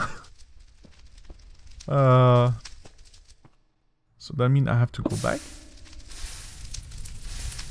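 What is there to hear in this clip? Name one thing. Flames crackle.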